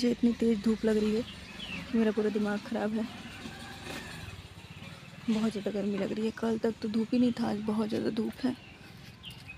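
A middle-aged woman talks close up, calmly.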